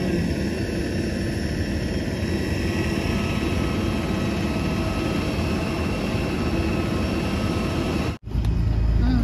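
A jet engine hums steadily in the distance.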